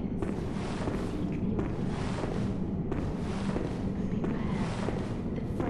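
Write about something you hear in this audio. Footsteps tread slowly on stone in a large echoing hall.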